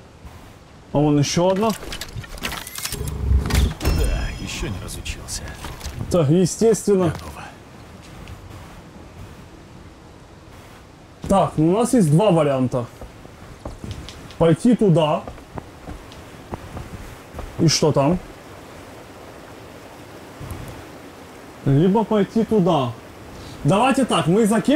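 A man talks with animation into a nearby microphone, in bursts.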